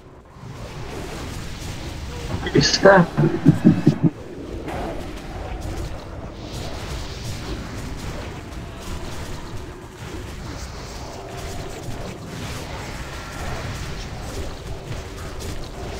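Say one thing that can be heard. Magic spells crackle and whoosh during a fierce battle.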